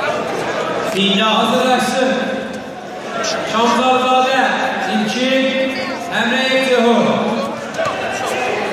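Several men shout with excitement from close by.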